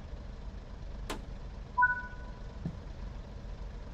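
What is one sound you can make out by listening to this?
A door slides open with a click.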